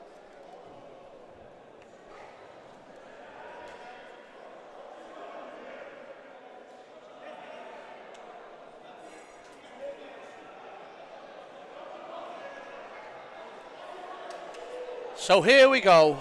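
A crowd murmurs faintly in a large open stadium.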